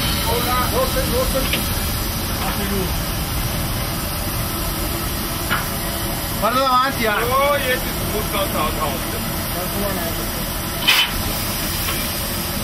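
A steam locomotive rumbles and clatters steadily while running.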